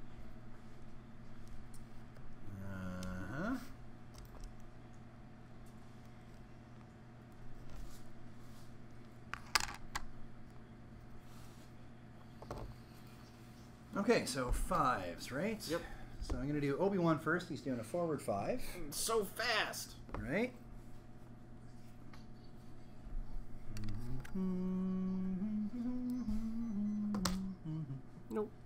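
Small plastic game pieces tap and slide on a table.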